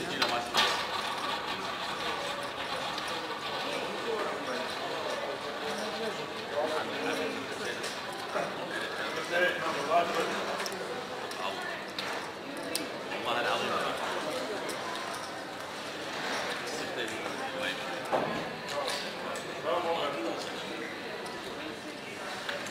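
Casino chips click and clatter as they are placed and stacked.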